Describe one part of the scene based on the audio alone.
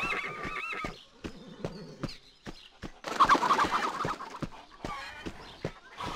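Footsteps run over dirt ground.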